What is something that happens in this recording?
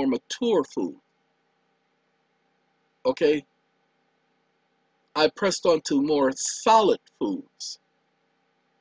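A man speaks into a microphone in short bursts with pauses.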